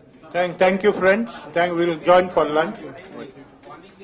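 A man speaks loudly and firmly into a microphone.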